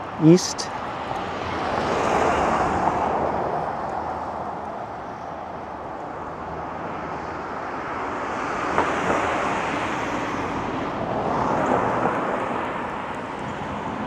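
A car drives past on a quiet street.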